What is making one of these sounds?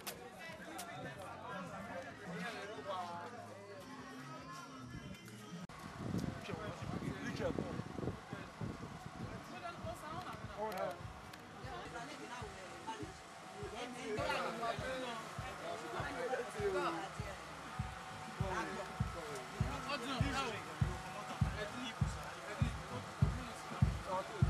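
Men and women talk nearby in a murmur of voices.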